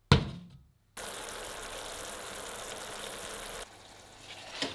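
Syrup boils and bubbles in a pan.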